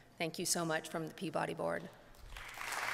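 A woman speaks warmly through a microphone.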